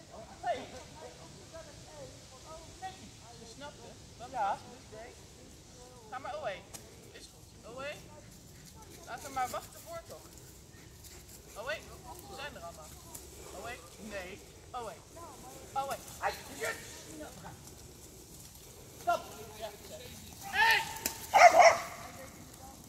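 An older woman calls out commands outdoors.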